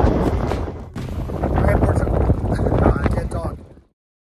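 A middle-aged man talks with animation close up.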